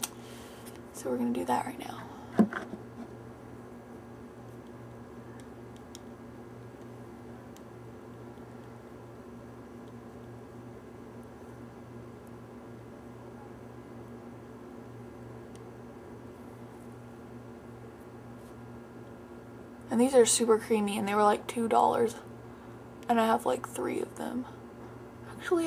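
A young woman speaks close to the microphone, calmly.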